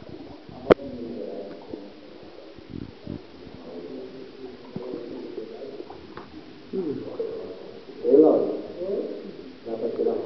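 Water splashes and laps close by, with a hollow echo.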